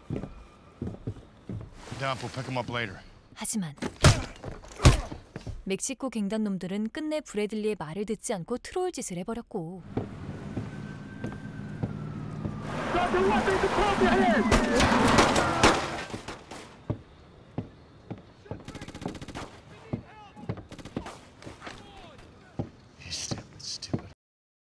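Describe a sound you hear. Footsteps thud on a wooden boardwalk.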